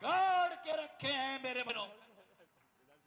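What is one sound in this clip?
A man chants loudly in a drawn-out voice.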